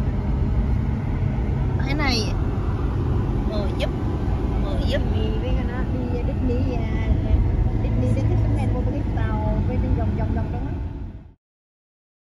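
A vehicle engine hums steadily from inside the car.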